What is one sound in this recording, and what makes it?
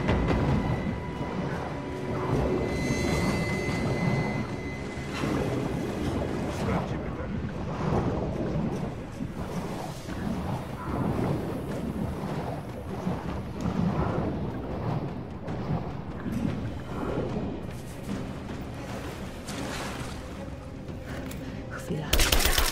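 Water churns and bubbles as a swimmer strokes underwater.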